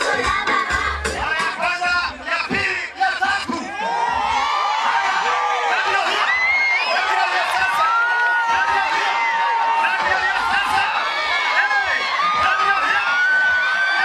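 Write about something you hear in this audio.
A crowd of men and women cheers and shouts outdoors.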